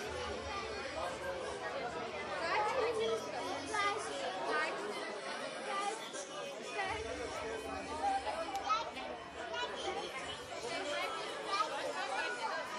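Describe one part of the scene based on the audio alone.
A crowd of adults and children chatters throughout in a large echoing hall.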